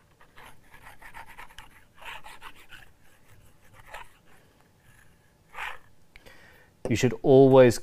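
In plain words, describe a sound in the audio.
Fingers rub and tap lightly on a small wooden plate.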